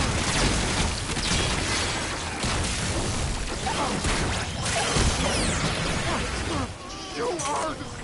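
Explosions and impacts crash loudly.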